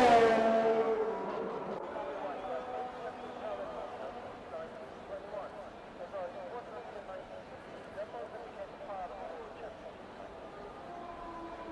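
Distant racing car engines whine and rev.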